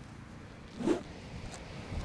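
A hand brushes through sand.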